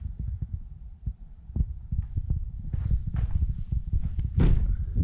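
Footsteps crunch over rubble in an echoing brick tunnel.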